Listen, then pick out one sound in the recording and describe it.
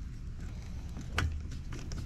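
A metal screwdriver tip clicks against plastic parts.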